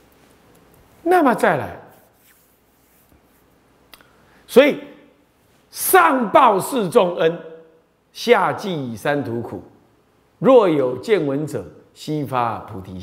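A middle-aged man speaks calmly and with animation into a close microphone.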